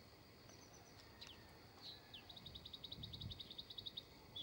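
A common redstart calls.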